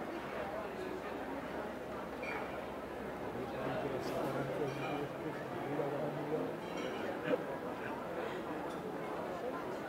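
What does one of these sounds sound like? A large crowd of men and women chatters steadily outdoors.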